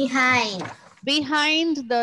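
A young girl speaks over an online call.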